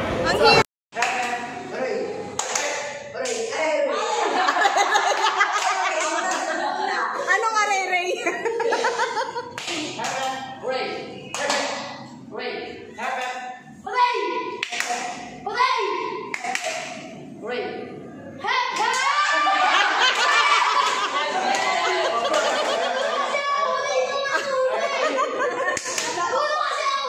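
A group of teenage boys shout and laugh together nearby.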